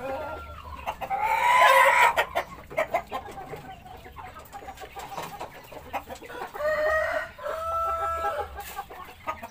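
A rooster crows nearby.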